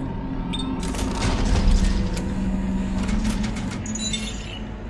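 A low mechanical whoosh and clatter sounds as a panel closes.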